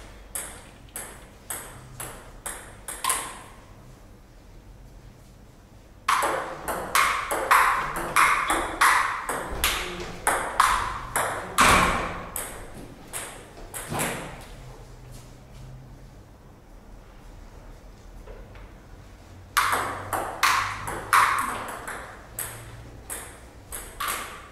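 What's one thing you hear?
A ball bounces back and forth across a table tennis table in quick clicks, echoing in a small room.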